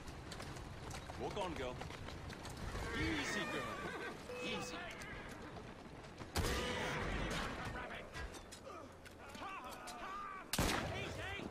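Horse hooves clatter on cobblestones.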